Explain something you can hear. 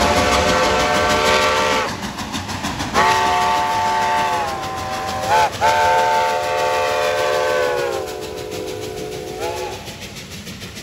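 A steam locomotive's whistle blows loudly in long blasts.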